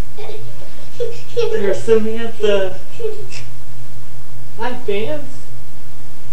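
A young child laughs and giggles close by.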